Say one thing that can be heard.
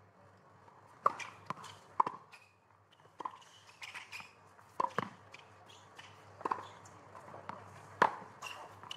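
Tennis balls are struck hard with rackets in a rally, each hit a sharp pop.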